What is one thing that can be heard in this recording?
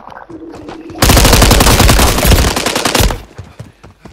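Gunfire rattles rapidly and loudly.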